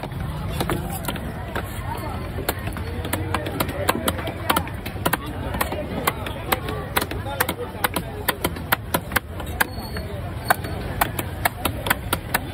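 A knife chops repeatedly through fish on a wooden block with sharp thuds.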